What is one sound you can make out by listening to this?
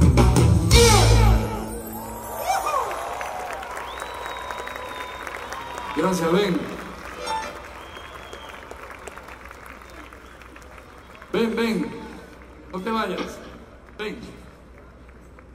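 Concertgoers close by call out in short bursts.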